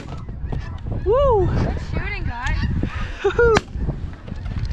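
Snow geese call in flight overhead.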